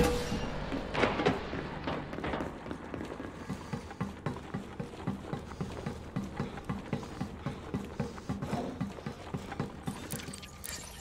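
Footsteps clank quickly on a metal floor.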